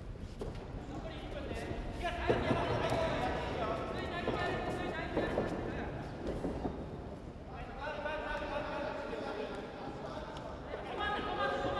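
A crowd of spectators shouts and calls out in a large echoing hall.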